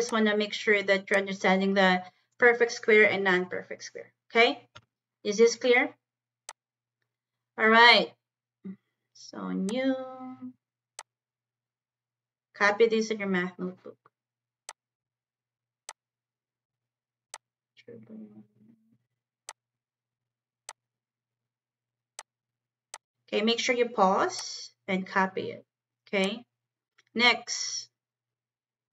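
A woman speaks calmly through a microphone, explaining in short bursts with pauses.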